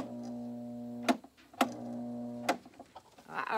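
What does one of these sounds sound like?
A tile saw motor whirs steadily, stopping and starting again.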